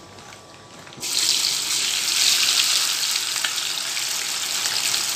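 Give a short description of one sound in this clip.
Food sizzles loudly in hot oil in a frying pan.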